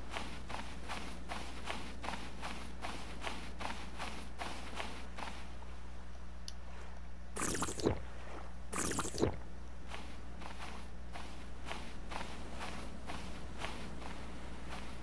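Footsteps crunch steadily on sand.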